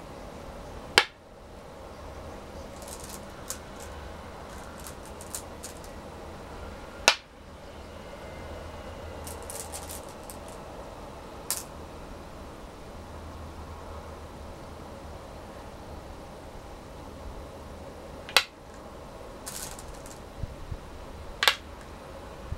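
A stone clicks sharply onto a wooden board.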